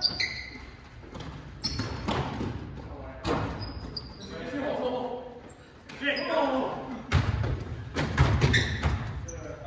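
A basketball bounces and thuds on a wooden floor in a large echoing hall.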